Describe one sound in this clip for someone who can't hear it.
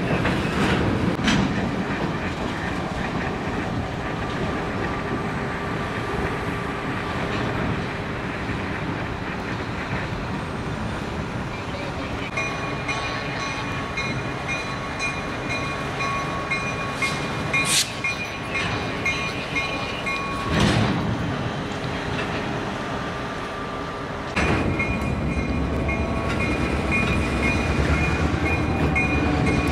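A freight train rolls slowly along the tracks with a low rumble.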